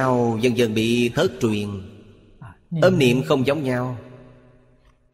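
An elderly man speaks calmly and clearly into a close microphone.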